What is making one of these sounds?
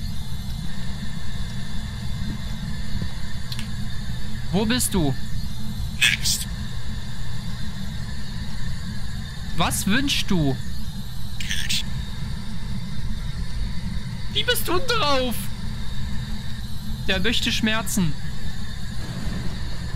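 Radio static hisses and hums steadily.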